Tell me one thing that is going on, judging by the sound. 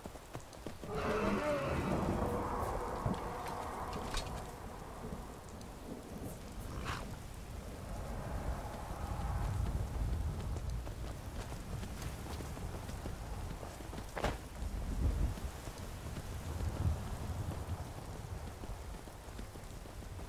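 A horse's hooves clop steadily on a stone path.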